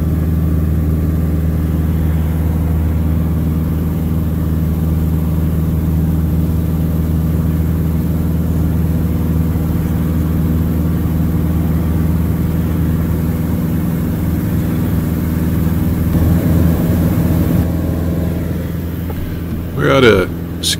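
A small plane's engine drones steadily and loudly from inside the cabin.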